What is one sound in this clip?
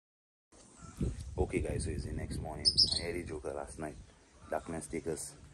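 A young man speaks casually, close by.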